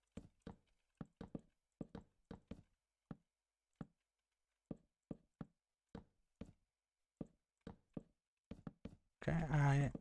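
Wooden blocks are placed one after another with soft, quick knocks.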